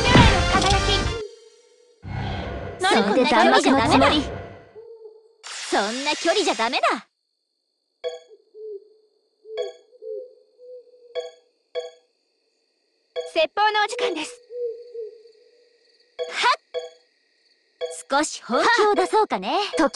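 Bright electronic battle effects burst and whoosh.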